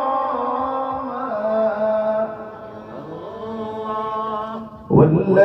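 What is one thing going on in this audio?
A man sings in a long, drawn-out melodic chant through a microphone and loudspeakers.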